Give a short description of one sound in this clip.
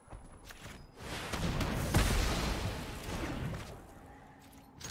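A game spell effect whooshes.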